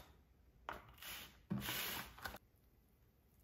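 A metal cake pan slides and scrapes across a silicone mat.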